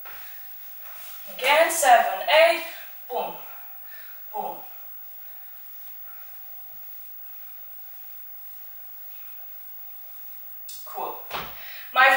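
Sneakers step and scuff on a wooden floor.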